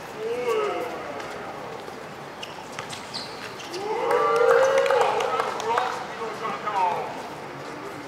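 Young men shout across an outdoor pitch.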